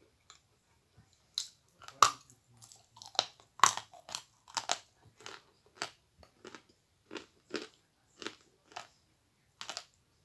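A young woman chews and smacks her lips wetly, close to a microphone.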